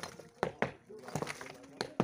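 Loose bricks tumble and clatter onto rubble.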